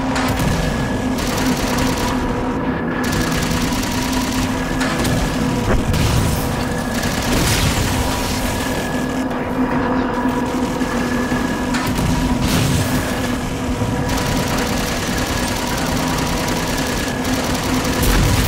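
Energy weapons fire in rapid zaps.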